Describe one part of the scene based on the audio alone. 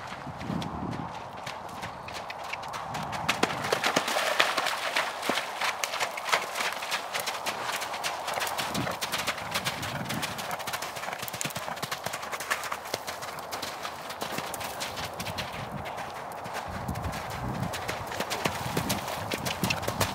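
A horse's hooves thud and splash rhythmically on wet, muddy ground.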